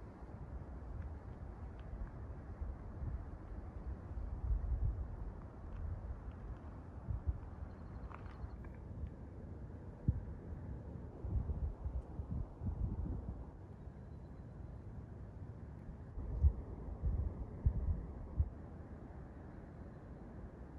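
Small waves lap against a rocky shore.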